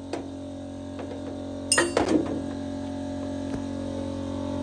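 Metal parts clink and scrape as a gear assembly is handled.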